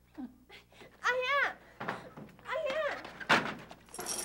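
A young woman speaks with alarm, close by.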